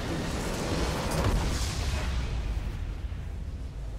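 A game structure explodes with a deep rumbling blast.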